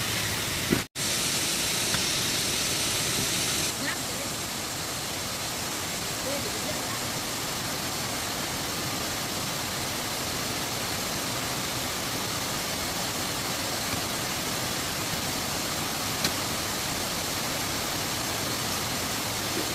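A waterfall rushes steadily outdoors.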